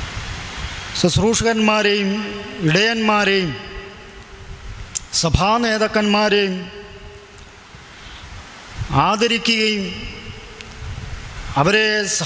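A man sings slowly into a microphone, holding long notes in phrases with pauses between them.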